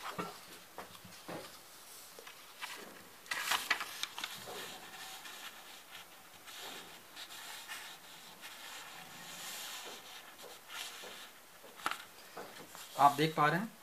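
Paper rustles softly as it is handled.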